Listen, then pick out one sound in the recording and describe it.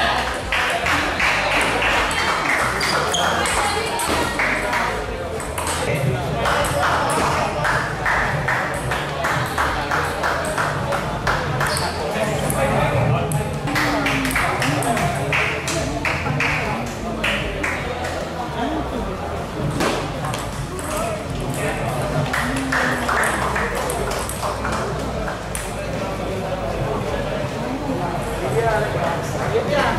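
A table tennis ball clicks back and forth across a table and paddles.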